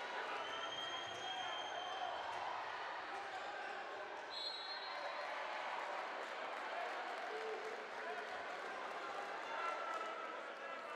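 A large indoor crowd murmurs and cheers steadily in an echoing hall.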